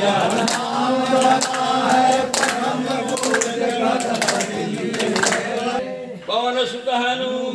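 A group of men sing a prayer together in a steady chant.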